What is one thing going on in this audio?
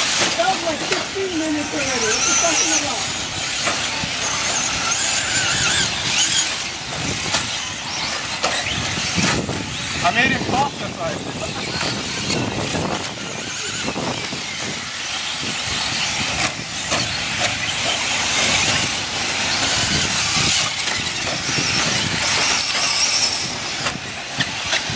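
Small electric motors whine high and rise and fall as model cars race.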